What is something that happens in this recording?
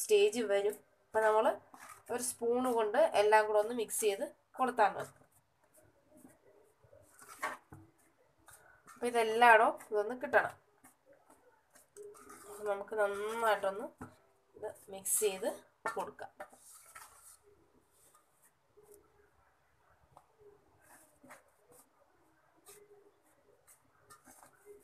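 Fingers rub and stir dry flour in a metal bowl with a soft rustle.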